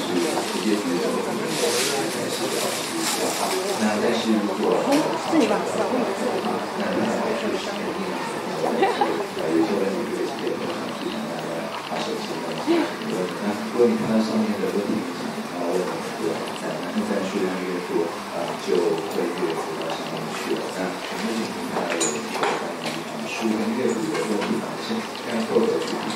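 A woman speaks steadily through a loudspeaker in a large echoing room.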